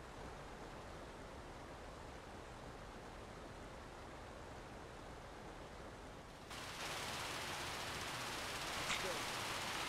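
A fire hose sprays water with a steady hiss.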